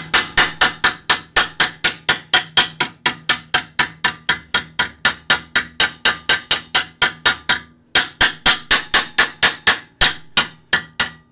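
A hammer strikes metal in rapid, steady blows with a sharp ringing clang.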